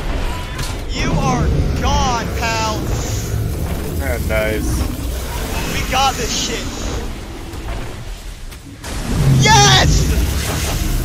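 A huge beast roars and screeches.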